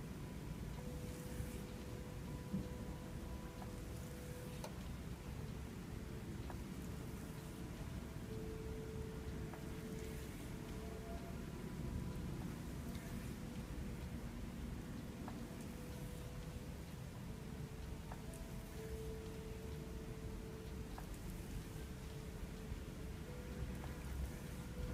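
Hands rub and squeeze oiled skin with soft slick sounds.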